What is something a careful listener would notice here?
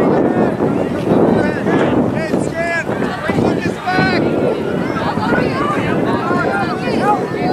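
Young men shout and call to each other outdoors on an open field.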